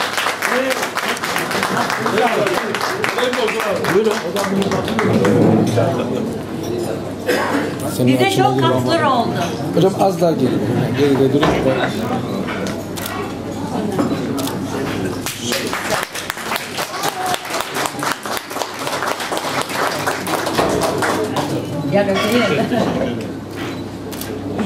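Several people clap their hands nearby.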